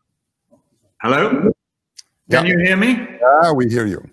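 An older man speaks with animation over an online call.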